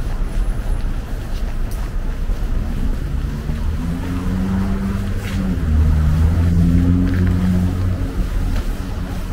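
Footsteps tread on a slushy, snowy sidewalk.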